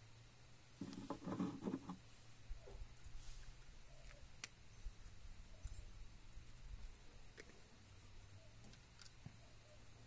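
Metal pliers clink and click as they are handled.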